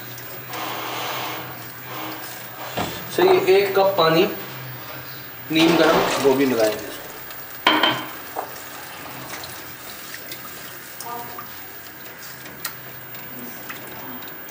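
A spatula scrapes and stirs thick liquid in a metal pot.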